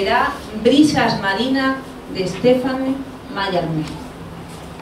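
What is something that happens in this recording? A young woman speaks into a microphone with animation.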